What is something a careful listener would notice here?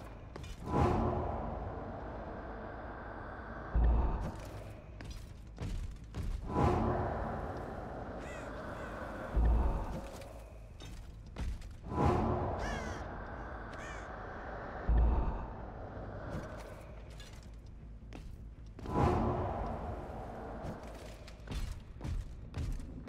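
Game sound effects whoosh and rumble in loud, repeating bursts.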